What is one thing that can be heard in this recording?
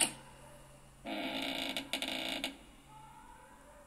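A heavy door creaks open through a small phone speaker.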